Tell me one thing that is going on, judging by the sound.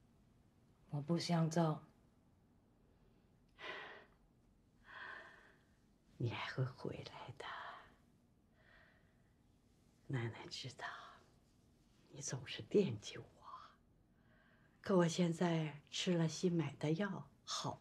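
An elderly woman speaks gently and warmly, close by.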